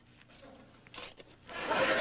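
A shovel scrapes into a pile of dirt.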